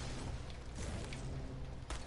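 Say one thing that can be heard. A pickaxe strikes a tree trunk with sharp knocks.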